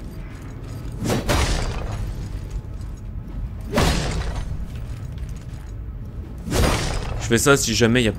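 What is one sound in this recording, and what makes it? A blade slashes through the air with heavy swooshing blows.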